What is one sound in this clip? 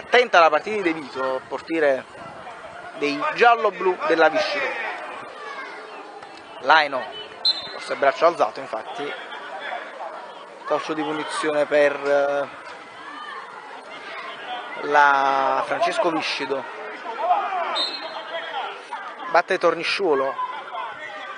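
Adults on the sideline shout encouragement.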